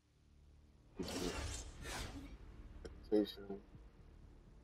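A game menu plays a shimmering reward sound.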